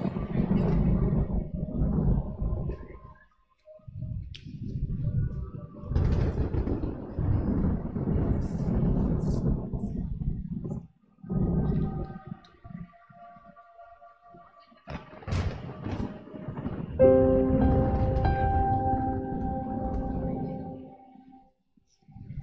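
A bass guitar plays low notes.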